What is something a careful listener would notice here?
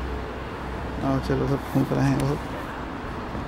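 A middle-aged man speaks briefly and calmly close by.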